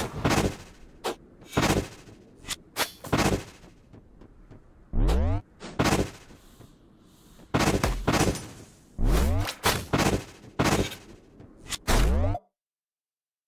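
Game magic blasts whoosh and boom in short, quick bursts.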